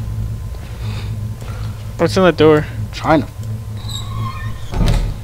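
A wooden door creaks open slowly.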